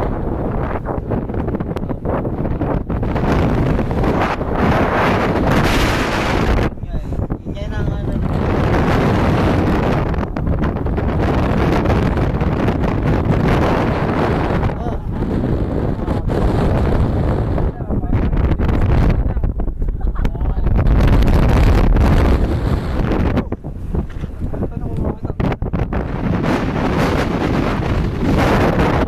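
Strong wind roars across the microphone outdoors.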